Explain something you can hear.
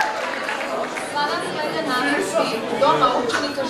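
A young woman speaks calmly through a microphone in a large echoing hall.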